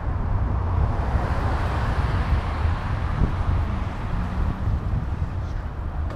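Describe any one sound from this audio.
A van drives by on the road.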